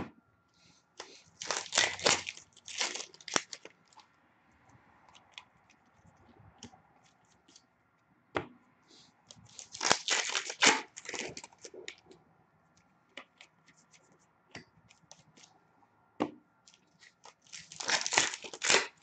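Foil card packs crinkle and tear open.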